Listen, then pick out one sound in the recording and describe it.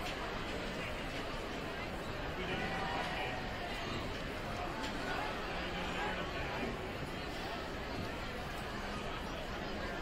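Sneakers squeak on a hardwood floor.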